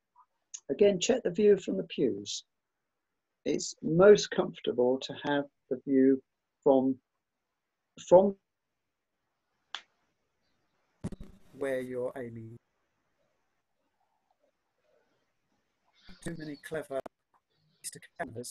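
An older man speaks calmly through an online call, with pauses.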